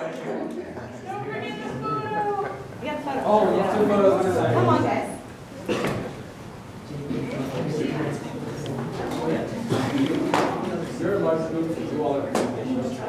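Several men and women chat nearby in a room.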